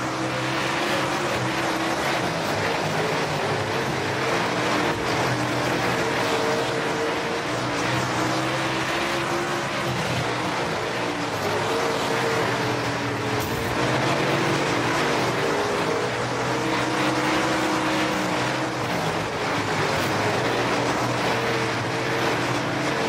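A race car engine roars loudly, rising and falling in pitch as it speeds up and slows.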